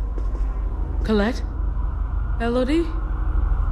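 A young woman calls out hesitantly nearby.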